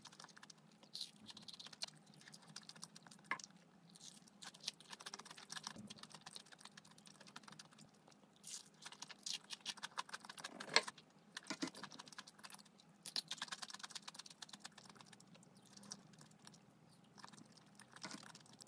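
A woman chews crunchy fried food up close.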